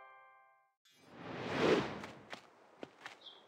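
A soft whoosh sweeps past.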